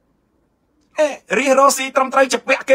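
A young man speaks with emotion close to a microphone.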